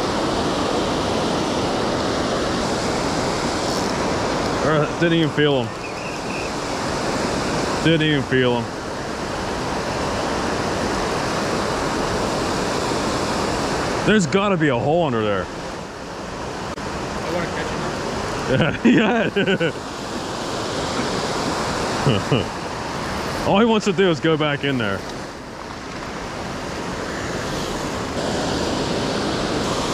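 Water rushes steadily over a weir.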